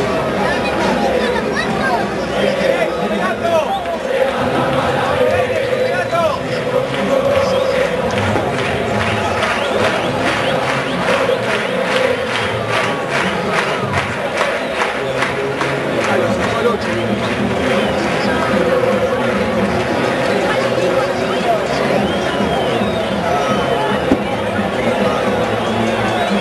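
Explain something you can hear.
A dense crowd talks and cheers all around, close by.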